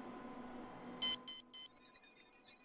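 A game menu chimes as a notice opens.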